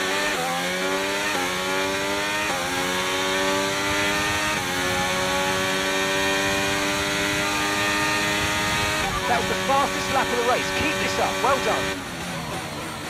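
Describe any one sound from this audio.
A racing car engine whines loudly, rising in pitch and dropping with each gear change.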